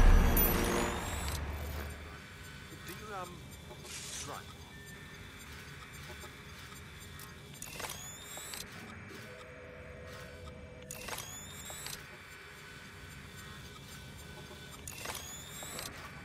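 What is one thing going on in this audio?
A short electronic glitch crackles and whooshes several times.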